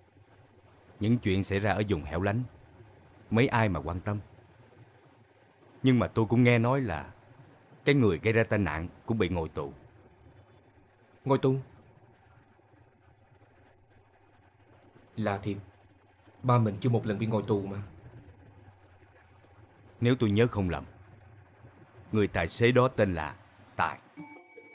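A middle-aged man speaks in a low, earnest voice close by.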